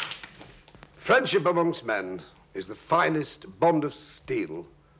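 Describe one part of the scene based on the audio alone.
A man speaks slowly and solemnly, close to a microphone.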